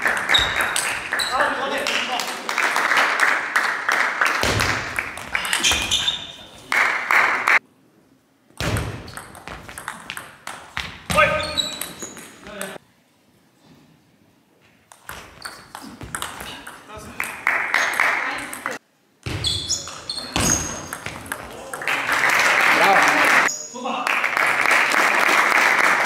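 A table tennis ball clicks rapidly back and forth off paddles and a table.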